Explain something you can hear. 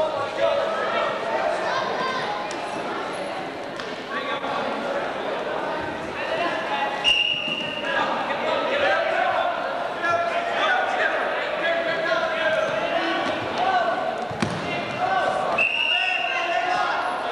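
Wrestlers' shoes squeak on the mat.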